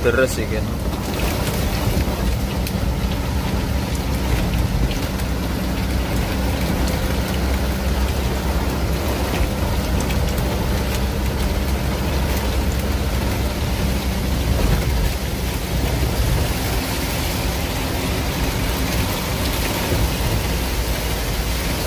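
Windshield wipers swish back and forth.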